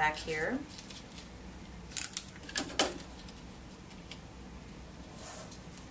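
Paper crinkles and rustles in hands.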